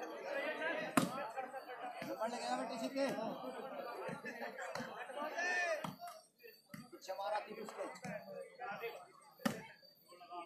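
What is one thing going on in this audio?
A volleyball is struck with a sharp slap.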